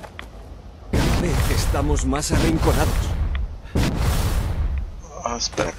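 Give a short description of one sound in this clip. A loud burst of combat noise roars.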